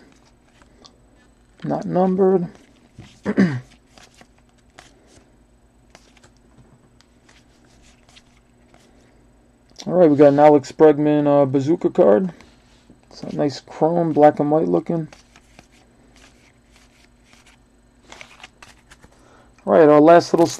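Trading cards rustle and flick softly as they are shuffled by hand.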